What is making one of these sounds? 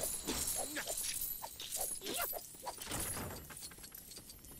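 Coins jingle and clink rapidly as they scatter.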